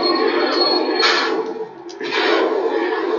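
A vehicle bursts into flames with a loud explosion.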